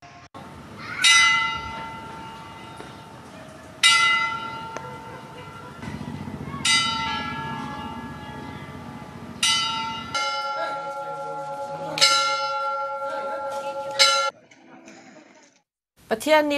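A church bell rings out loudly, struck at slow, even intervals, each stroke ringing on and fading.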